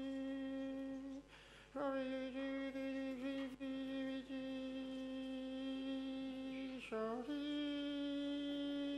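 A man sings long, held notes in a strong, full voice in a large echoing hall.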